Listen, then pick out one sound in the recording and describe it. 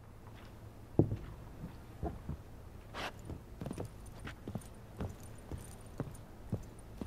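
Boots thud on a wooden floor.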